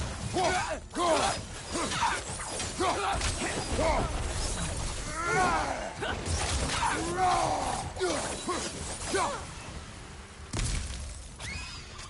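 Heavy blows land and ice shatters with loud crashes.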